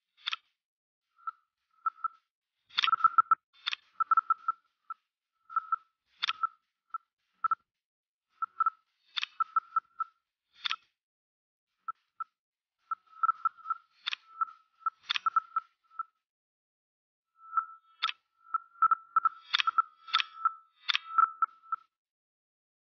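Short electronic blips and clicks sound as track pieces snap into place.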